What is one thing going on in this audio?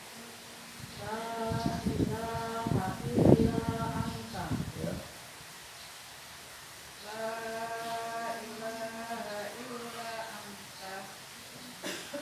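A man chants in a drawn-out, melodic voice at a short distance outdoors.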